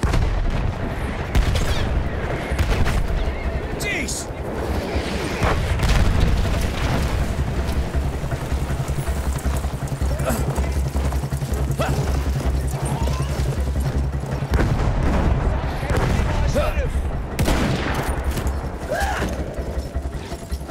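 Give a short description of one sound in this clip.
Horse hooves thud steadily at a gallop.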